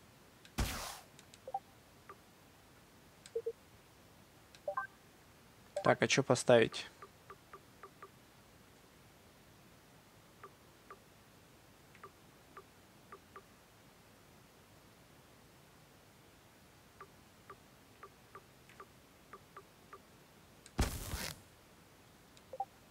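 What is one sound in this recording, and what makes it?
Soft game menu clicks tick as items are browsed.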